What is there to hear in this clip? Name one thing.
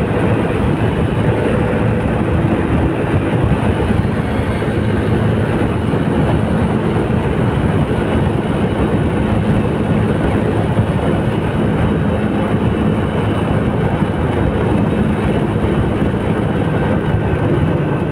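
An engine rumbles steadily while a car drives along a road.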